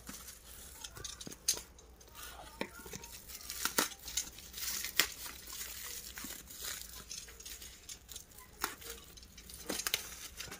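A blade slits and scrapes through crinkling bubble wrap and tape.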